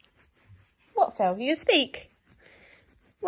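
A baby babbles close by.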